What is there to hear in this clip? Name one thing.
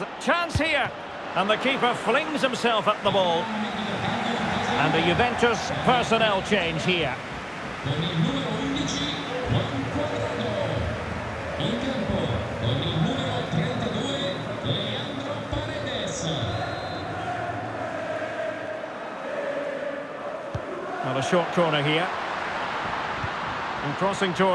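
A large stadium crowd roars and chants throughout.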